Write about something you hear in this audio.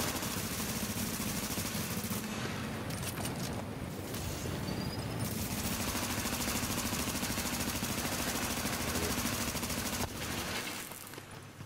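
Automatic rifles fire in rapid bursts, echoing in a tiled tunnel.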